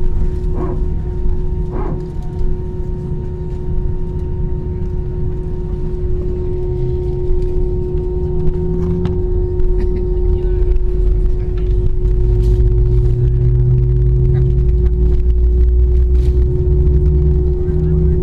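The airliner rumbles and bumps as it rolls along the runway.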